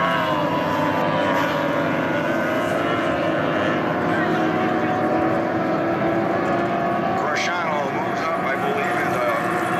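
Racing boat engines roar loudly across open water.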